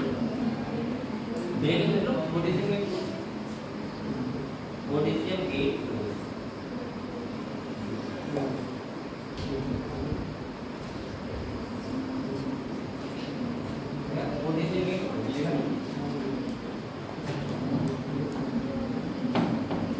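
A young man speaks calmly and explains, close by.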